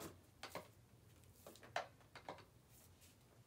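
Paint splatters and taps onto a board in short bursts.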